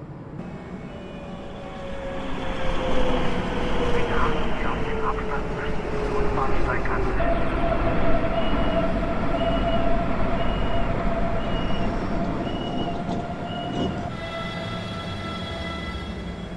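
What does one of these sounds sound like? A train rumbles loudly as it pulls into a station.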